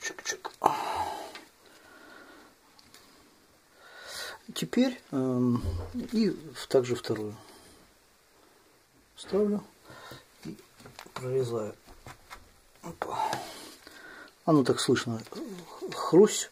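Stiff leather rustles and taps as it is handled.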